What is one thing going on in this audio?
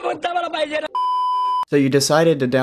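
A steady high beep sounds.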